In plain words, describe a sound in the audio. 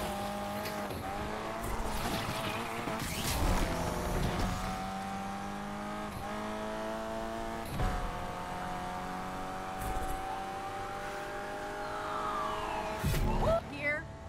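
A racing car engine roars and revs steadily at high speed.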